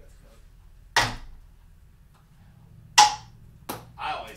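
A ping pong ball bounces on a table and into cups.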